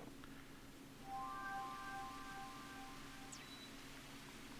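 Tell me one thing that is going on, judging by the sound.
A video game plays short bright chiming tones.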